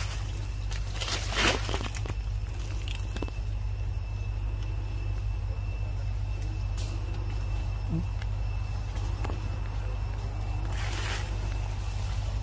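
A monkey shuffles and rustles against a tree trunk close by.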